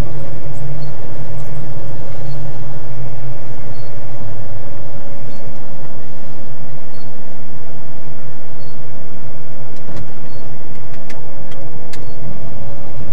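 Windshield wipers sweep back and forth across the glass.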